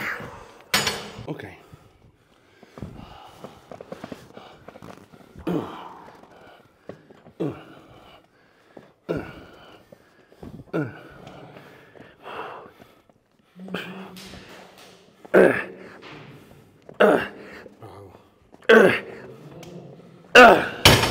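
A man speaks with animation close by, urging on.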